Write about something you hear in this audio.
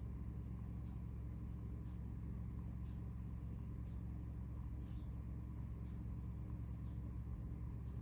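Solder flux crackles and sizzles faintly under a hot soldering iron.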